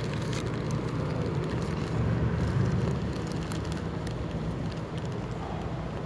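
A van drives past close by.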